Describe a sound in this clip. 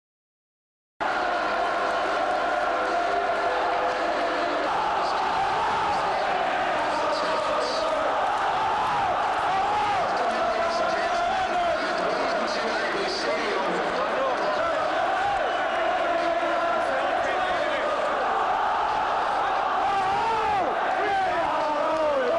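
A large stadium crowd sings and chants loudly in unison.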